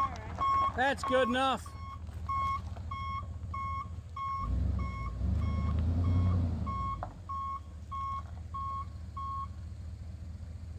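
A truck engine idles and then revs up.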